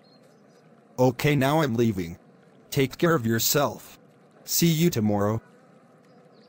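A man speaks calmly in a few short phrases, close by.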